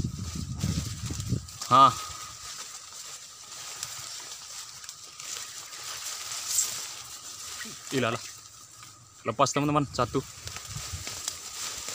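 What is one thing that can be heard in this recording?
Tall grass and brush rustle as a man pushes through.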